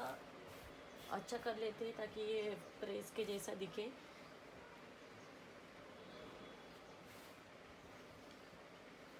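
Fabric rustles softly as clothes are folded.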